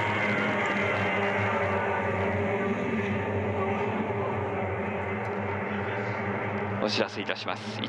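Racing boat engines roar steadily over the water.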